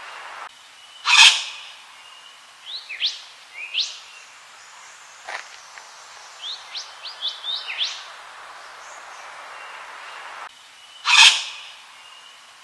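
A bird gives a loud, harsh rasping call.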